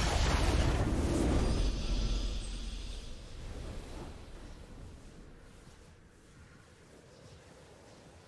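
A triumphant video game fanfare plays.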